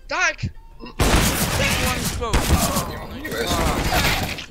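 A rifle shot cracks loudly.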